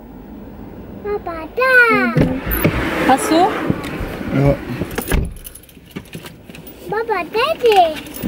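A young woman speaks up close with lively, exclaiming tones.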